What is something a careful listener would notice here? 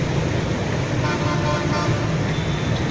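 A horn beeps briefly in the traffic.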